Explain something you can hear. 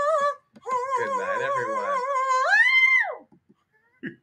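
A man sings a high, wavering note through a microphone, rising to a loud held cry.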